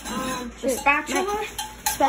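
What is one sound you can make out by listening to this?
A metal pan clanks onto a stovetop.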